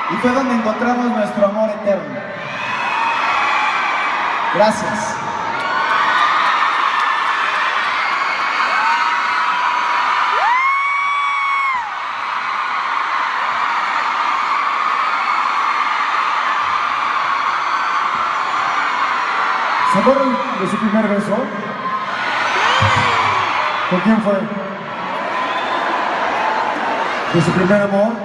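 A man sings loudly through loudspeakers in a large echoing hall.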